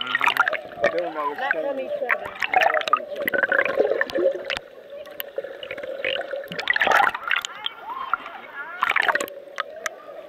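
Water gurgles and bubbles close by, heard underwater.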